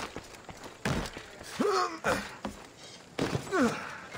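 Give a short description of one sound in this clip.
A body lands with a heavy thump.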